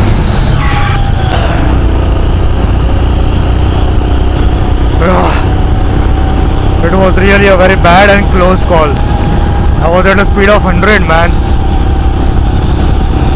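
Wind roars steadily over a moving motorcycle.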